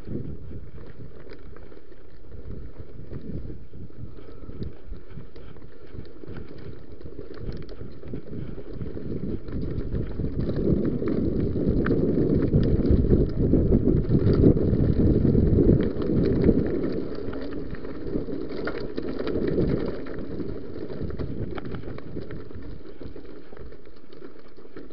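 Wind rumbles loudly over a microphone outdoors.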